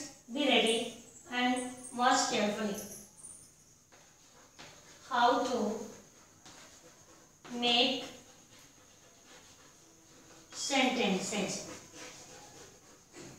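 A young woman speaks calmly in short phrases, close by.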